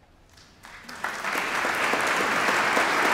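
A large mixed choir bursts into loud song in a vast, echoing hall.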